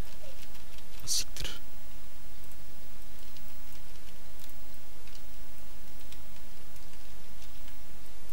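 Sharp game attack sounds hit repeatedly in quick bursts.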